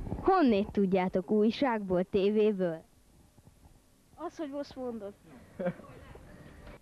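Children talk outdoors nearby.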